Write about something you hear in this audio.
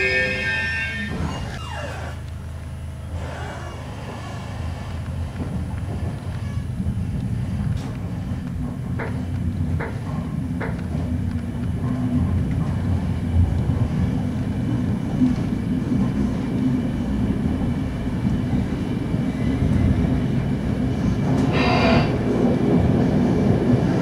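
A train rumbles steadily along the tracks, heard from inside a carriage.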